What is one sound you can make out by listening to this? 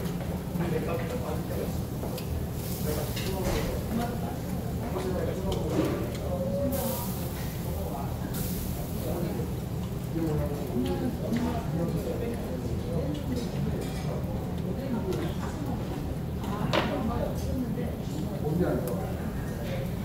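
Meat sizzles on a hot grill.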